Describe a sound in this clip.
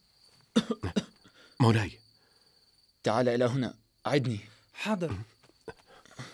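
A young man speaks tensely up close.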